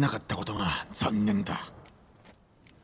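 A man speaks in a low, rough voice.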